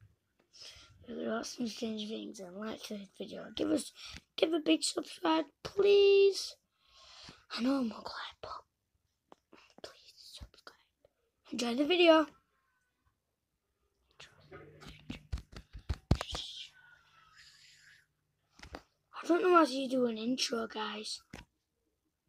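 A young boy talks close to the microphone with animation.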